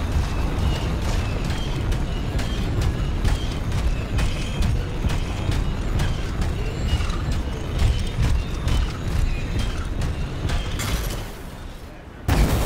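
Heavy metal footsteps clank and thud at a steady walking pace.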